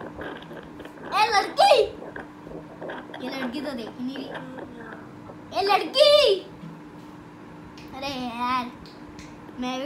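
A young boy laughs.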